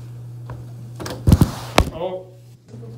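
Footsteps thud on a carpeted floor close by.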